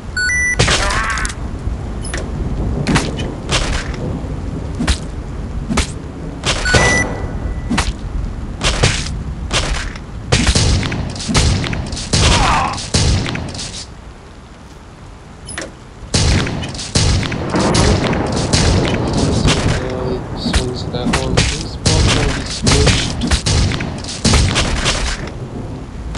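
Gunshots fire in quick bursts, again and again.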